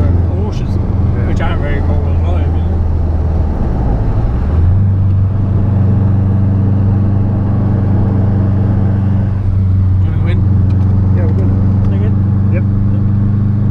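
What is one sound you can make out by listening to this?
A man talks close by over the engine noise.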